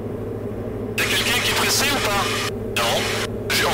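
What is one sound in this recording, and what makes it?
A middle-aged man speaks calmly over a headset intercom.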